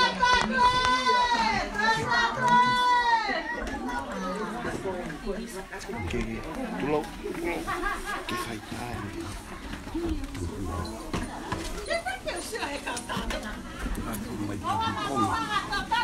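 Women ululate loudly and shrilly close by.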